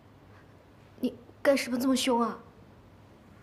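A young woman speaks in an upset, pleading voice.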